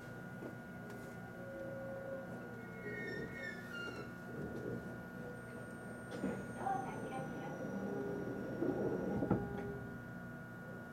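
A train's engine hums steadily from inside a carriage.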